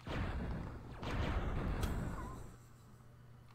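Explosions boom and crackle from a video game.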